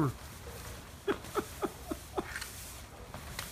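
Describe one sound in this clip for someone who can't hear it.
A grabber tool clacks several times.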